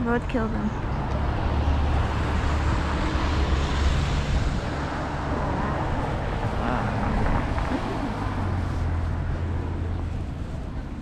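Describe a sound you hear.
Cars drive past on a road.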